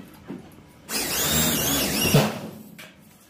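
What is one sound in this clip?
A power drill whirs as it bores into metal.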